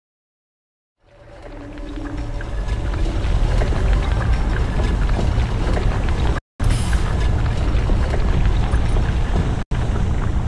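A deep electronic rumble swells up and roars steadily.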